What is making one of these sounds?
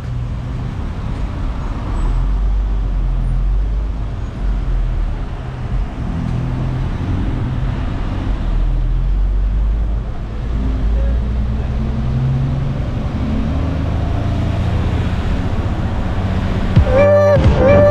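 A diesel city bus engine rumbles, heard from inside the cabin.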